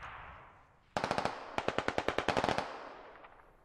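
A rifle fires a rapid burst of shots.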